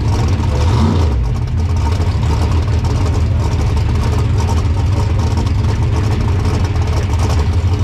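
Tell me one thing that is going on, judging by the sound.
A car engine idles with a loud, rough, lopey rumble close by.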